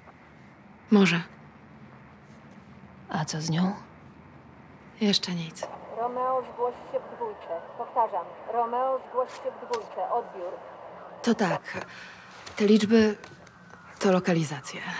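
A second young woman answers softly nearby.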